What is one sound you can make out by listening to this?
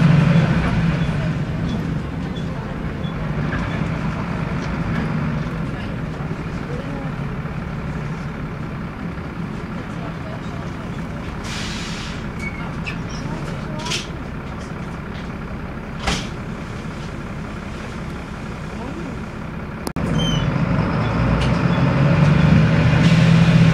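A diesel bus engine rumbles, heard from inside the bus.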